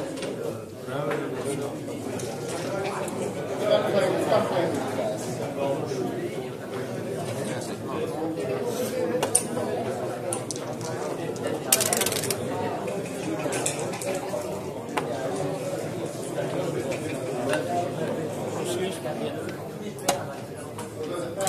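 Game pieces click and clack against a wooden board.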